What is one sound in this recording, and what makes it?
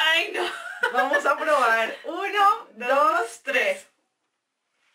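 Two young women talk and laugh cheerfully close to a microphone.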